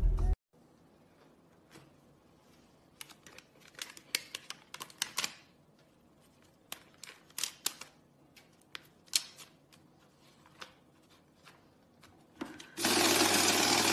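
Banknotes rustle and click as they are handled.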